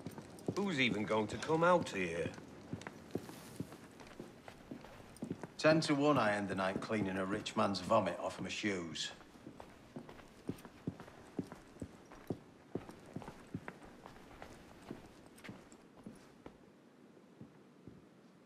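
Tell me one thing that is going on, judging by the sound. Soft footsteps tread on a wooden floor.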